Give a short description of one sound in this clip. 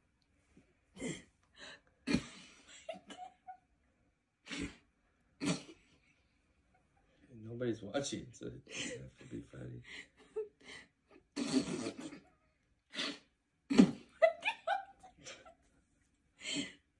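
A young woman laughs and giggles close by.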